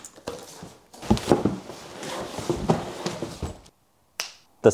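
Plastic wrapping crinkles as parts are lifted out.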